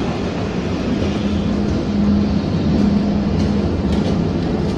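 The traction motors of an electric locomotive hum.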